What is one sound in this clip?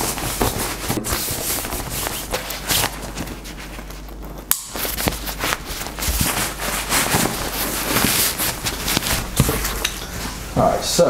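Fabric bags rustle and crinkle as they are handled.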